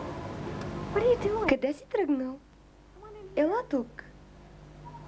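A woman speaks anxiously nearby.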